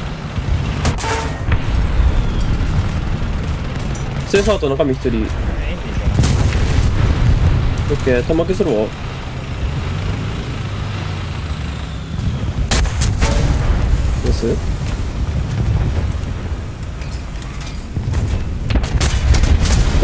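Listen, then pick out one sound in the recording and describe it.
A tank cannon fires with sharp, loud booms.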